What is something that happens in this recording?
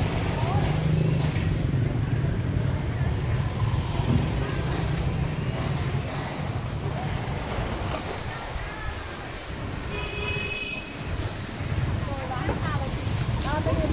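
Motorbike engines rumble and pass nearby on a busy street.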